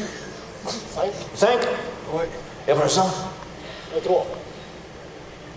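A man speaks with animation on a stage.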